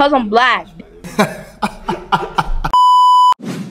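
A young man laughs heartily.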